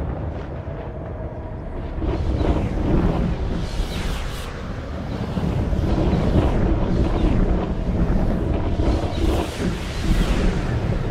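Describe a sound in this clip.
A spacecraft engine roars and rumbles steadily, with whooshing surges.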